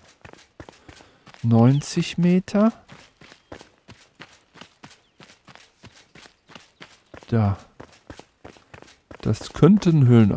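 Footsteps patter quickly on stone and dirt.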